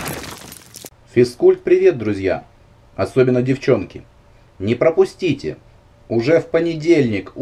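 A man speaks calmly and clearly, in short phrases with pauses.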